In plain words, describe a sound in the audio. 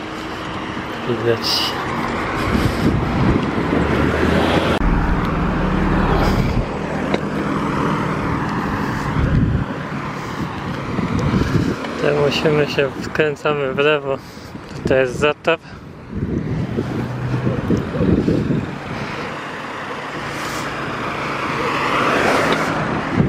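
Car engines hum and tyres roll on the road nearby.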